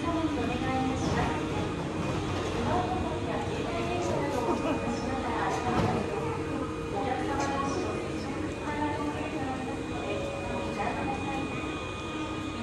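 A stopped train hums steadily.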